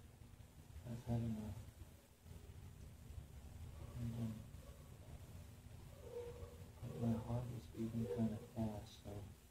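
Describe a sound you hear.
A man talks softly and soothingly nearby.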